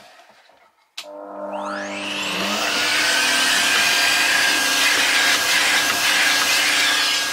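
A vacuum cleaner starts up, its motor whining higher, then runs steadily.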